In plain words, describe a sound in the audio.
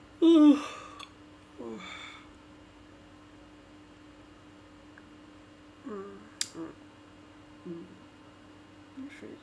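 A woman speaks close to a microphone in short, hesitant bursts.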